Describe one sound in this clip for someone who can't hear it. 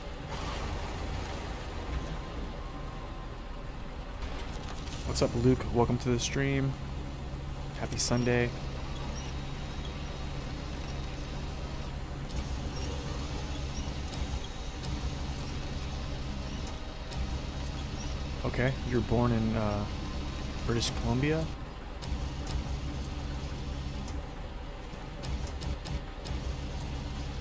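A heavy truck engine idles with a low rumble.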